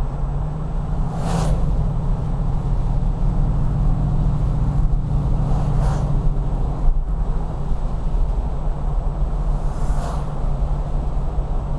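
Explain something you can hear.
Oncoming cars whoosh past.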